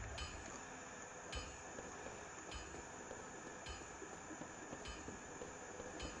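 Armoured footsteps clank on stone steps.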